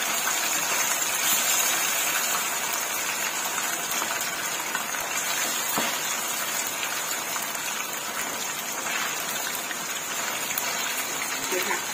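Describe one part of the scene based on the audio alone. A metal utensil scrapes and taps against a pan.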